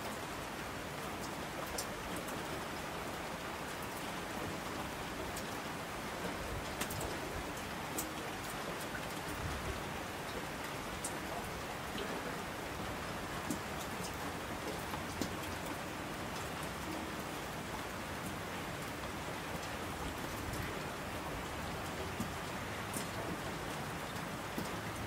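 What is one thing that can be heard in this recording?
Streams of water rush down a slope.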